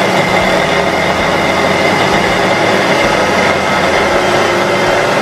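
An electric food chopper whirs loudly and steadily, its blades grinding through corn.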